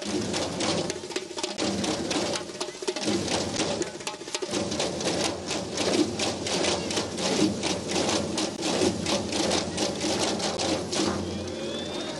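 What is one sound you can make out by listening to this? Many frame drums beat together in a fast, steady rhythm.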